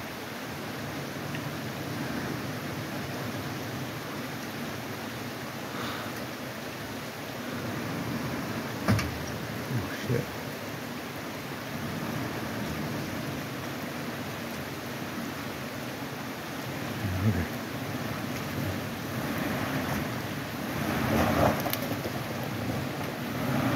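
Water splashes under a vehicle's tyres.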